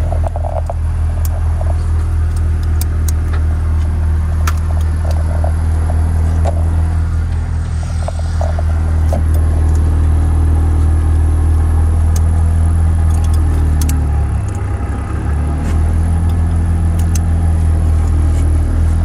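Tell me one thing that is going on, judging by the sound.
Seat harness buckles click and rattle.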